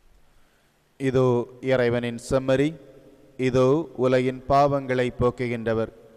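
A man chants slowly in a sung voice through a microphone.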